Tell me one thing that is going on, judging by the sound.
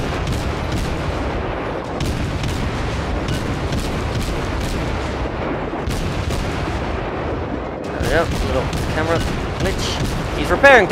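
Naval guns fire in rapid, repeated booms.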